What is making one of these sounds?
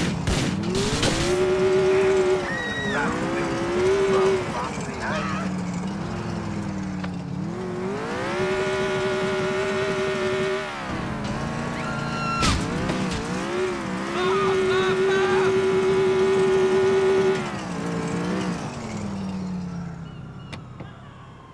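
A car engine revs hard, rising and falling in pitch.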